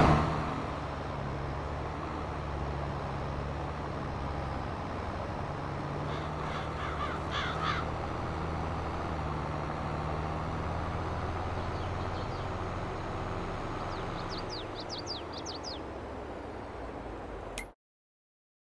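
A tractor engine rumbles steadily as it drives.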